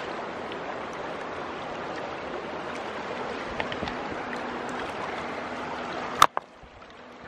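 Small waves lap gently against a rocky shore.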